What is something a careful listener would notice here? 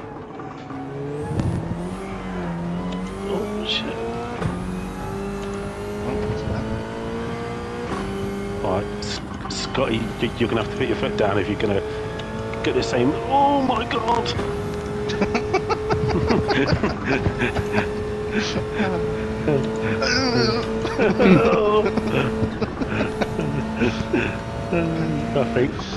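Tyres squeal on tarmac through the corners.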